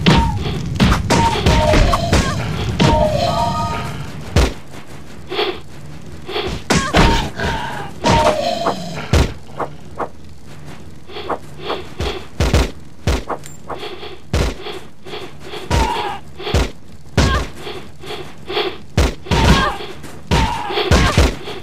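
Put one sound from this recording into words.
Weapons clash and strike in a fight.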